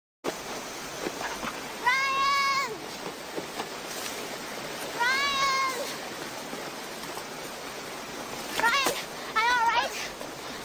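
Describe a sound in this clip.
Water rushes steadily over rocks in a river.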